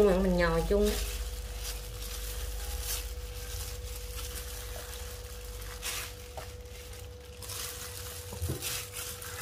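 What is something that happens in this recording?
A plastic glove crinkles.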